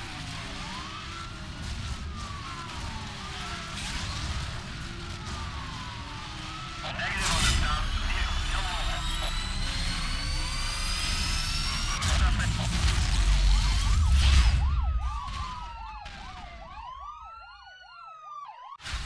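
A sports car engine roars and revs.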